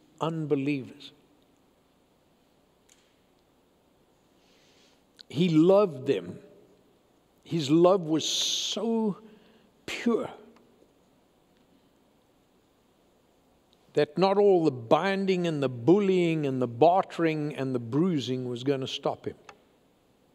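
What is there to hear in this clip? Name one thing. An elderly man speaks with emphasis and long pauses, heard through a microphone in a large room.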